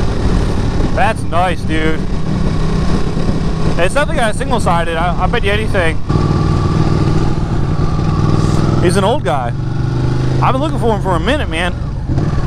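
A motorcycle engine revs up sharply in short bursts.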